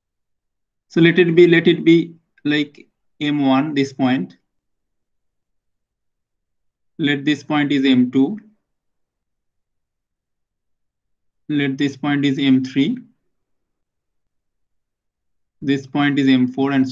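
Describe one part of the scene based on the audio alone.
A man speaks calmly through a microphone, explaining in short phrases with pauses.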